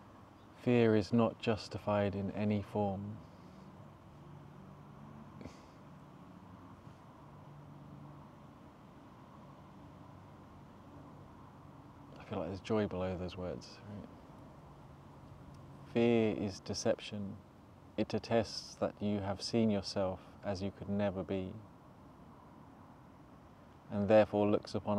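A young man speaks calmly into a close microphone, with long pauses.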